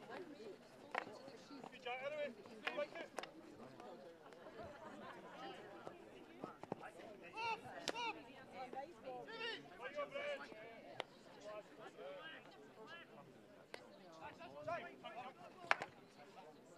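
Wooden sticks clack sharply against a ball and each other.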